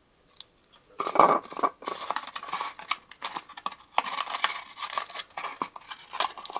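A knife cuts into a small plastic cap with sharp creaks.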